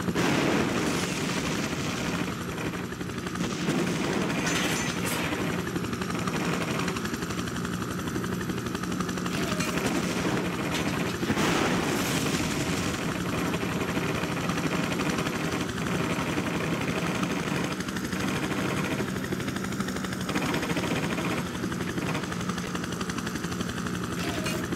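A military helicopter's rotor thumps and its engine whines as it flies.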